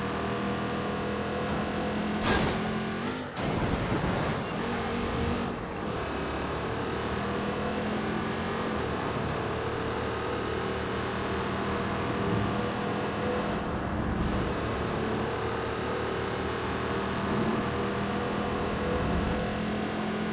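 A car engine hums steadily as a car drives.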